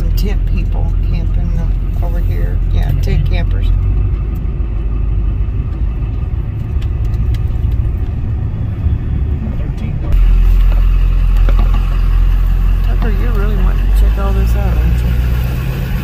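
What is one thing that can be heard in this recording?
A car engine rumbles steadily, heard from inside the car.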